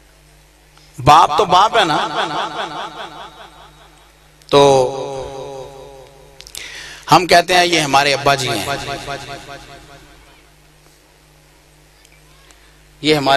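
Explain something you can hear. A man chants loudly and with feeling into a microphone, with echo from loudspeakers.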